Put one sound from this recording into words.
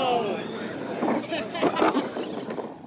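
A model truck thuds down hard onto the dirt.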